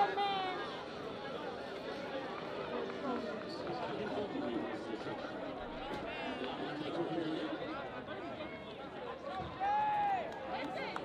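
Young people shout out loudly across an open field.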